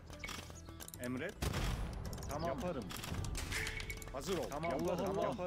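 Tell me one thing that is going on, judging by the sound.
Swords clang as soldiers fight.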